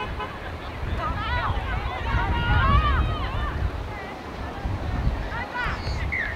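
Young women shout and call out on an open field outdoors.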